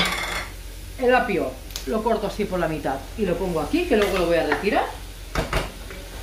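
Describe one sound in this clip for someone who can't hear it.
A wooden spoon scrapes against a metal pot.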